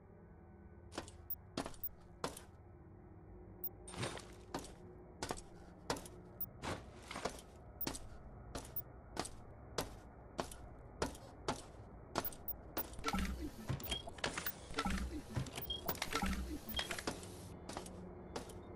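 Footsteps clank on a metal floor at a steady walking pace.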